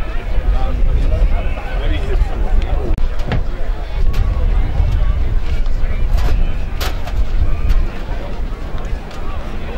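A crowd chatters in the distance outdoors.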